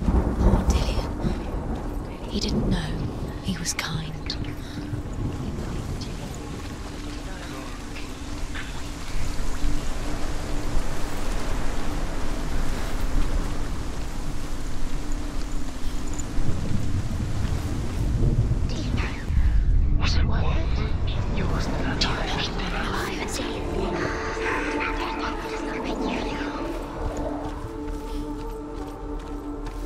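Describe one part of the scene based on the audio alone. Footsteps crunch quickly over gravel and grass.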